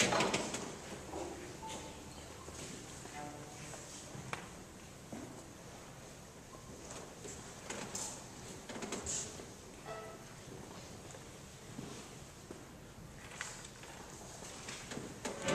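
A group of young violinists plays together in an echoing hall.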